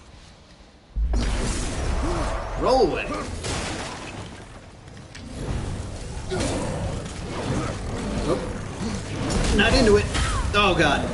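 Game combat sounds clash and boom loudly.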